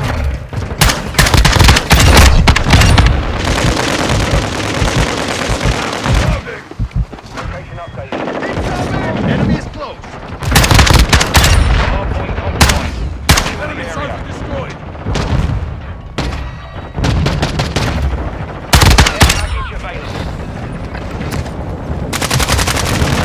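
Automatic gunfire fires in loud rapid bursts.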